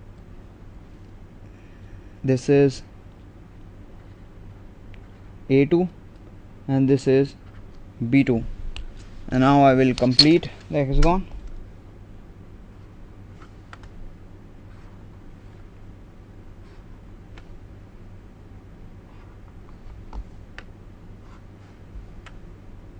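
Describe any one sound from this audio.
A marker squeaks and scratches on paper.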